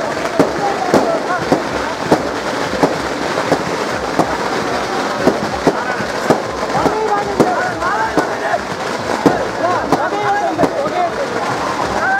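A crowd of men chatters and calls out loudly.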